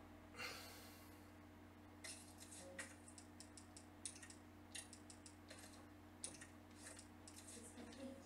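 Short menu clicks sound repeatedly.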